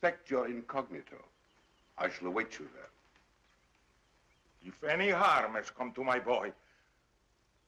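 An elderly man speaks calmly and firmly.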